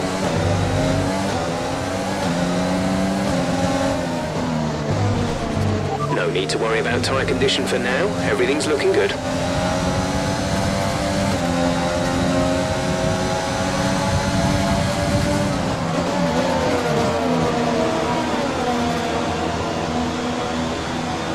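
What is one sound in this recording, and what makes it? A racing car engine screams at high revs, rising and falling as gears shift.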